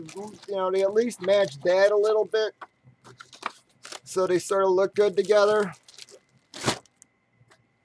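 Plastic wrapping crinkles and rustles as hands handle a package.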